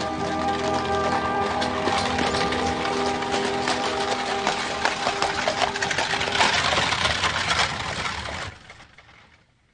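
Horses' hooves clop on the ground.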